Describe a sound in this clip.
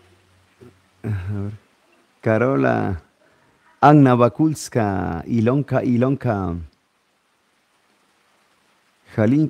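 A middle-aged man speaks in a warm, cheerful way, close to a microphone.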